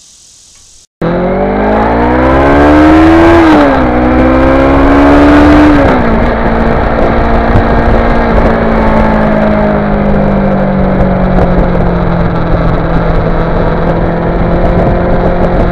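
A motorcycle engine revs up and shifts gears as it rides.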